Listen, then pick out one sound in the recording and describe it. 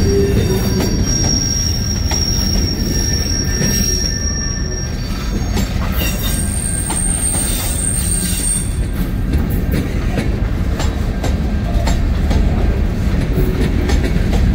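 Steel wheels clack over rail joints.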